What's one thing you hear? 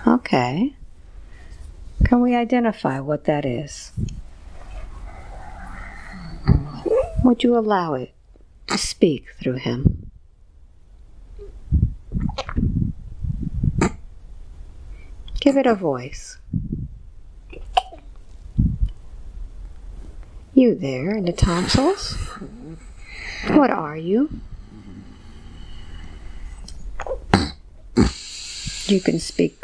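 A young man speaks softly and breathily, close to a microphone.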